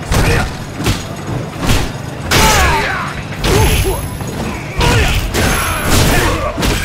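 Heavy punches land with loud thuds and smacks.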